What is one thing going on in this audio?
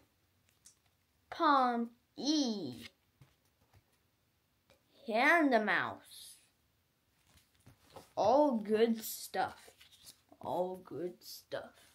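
Trading cards rustle and flick in a boy's hands.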